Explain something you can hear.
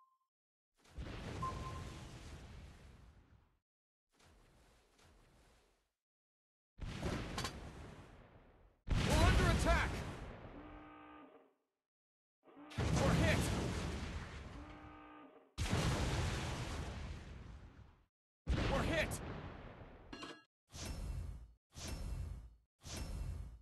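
Heavy naval guns fire in booming salvos that roll away.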